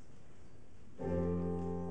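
A large choir sings.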